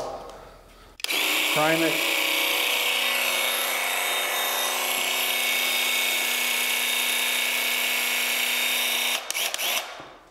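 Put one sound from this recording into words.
A handheld paint sprayer whirs steadily with a hissing spray.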